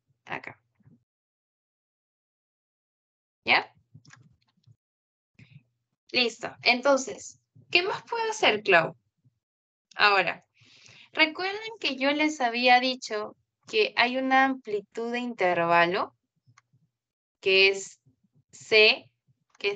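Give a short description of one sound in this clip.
A young woman speaks calmly through a microphone in an online call.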